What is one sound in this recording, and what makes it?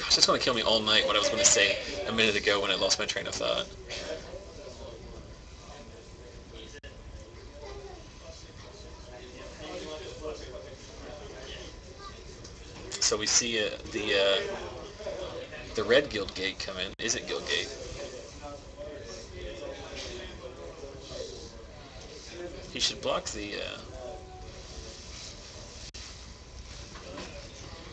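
Playing cards slide and tap on a play mat.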